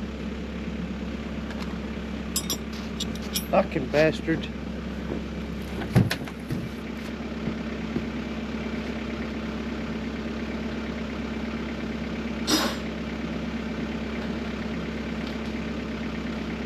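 A machine engine idles with a steady low hum close by.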